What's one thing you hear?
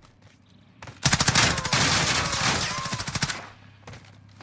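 A burst of gunfire rattles loudly.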